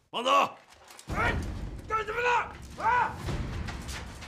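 A man shouts urgently up close.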